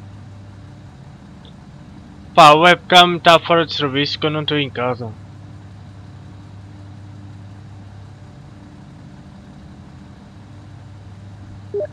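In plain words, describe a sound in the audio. A train engine hums steadily.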